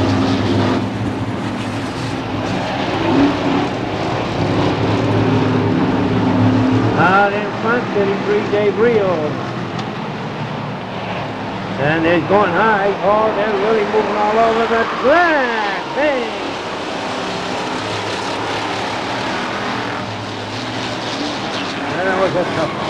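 A crowd cheers nearby.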